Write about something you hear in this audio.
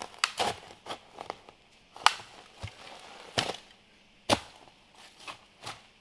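A stick scrapes and thumps against the ground.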